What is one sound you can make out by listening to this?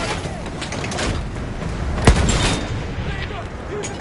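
An explosion booms loudly close by.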